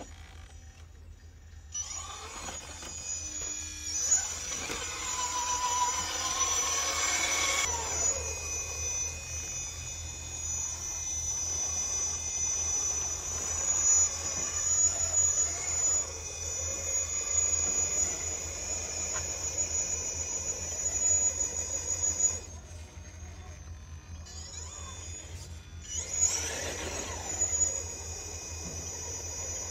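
Rubber tyres scrape and grind on rock.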